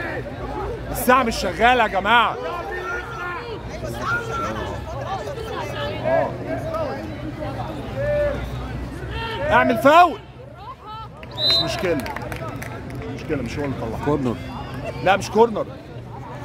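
Men shout and cheer loudly from a crowd nearby.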